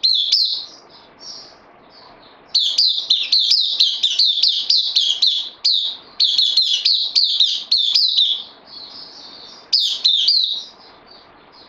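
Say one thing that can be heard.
A small bird sings loud, rapid, high chirping phrases up close.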